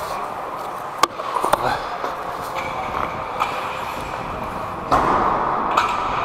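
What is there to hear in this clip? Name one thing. Hockey sticks clack against a puck and each other in a large echoing arena.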